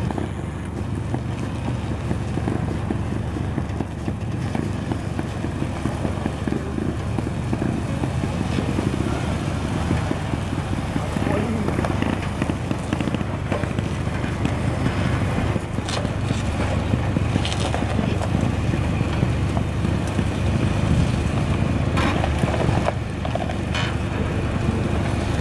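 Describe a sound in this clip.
Big tyres crunch slowly over sand and rock.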